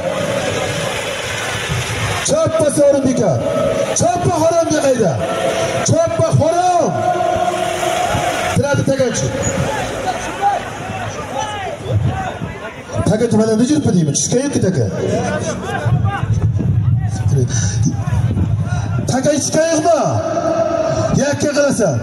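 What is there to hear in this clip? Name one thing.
A large crowd murmurs and shouts outdoors.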